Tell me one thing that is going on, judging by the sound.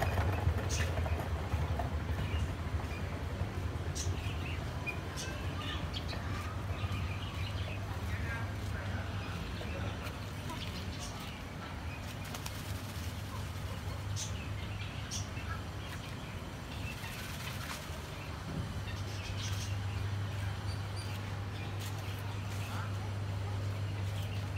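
Birds chirp and call from nearby.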